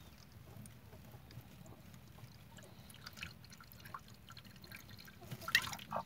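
Water trickles from a bottle into a plastic tube.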